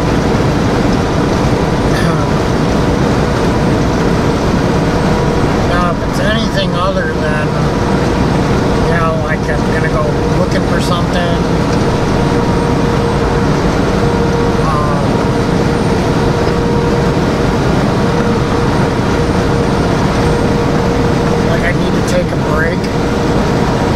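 A truck engine drones steadily as it drives along a highway.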